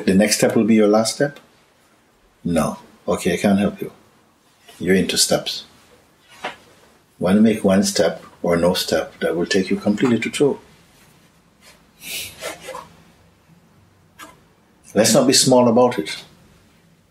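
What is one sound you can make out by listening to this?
An elderly man speaks calmly and slowly, close by, with pauses.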